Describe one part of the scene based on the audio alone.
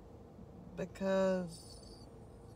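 A woman lets out a long, drawn-out cry.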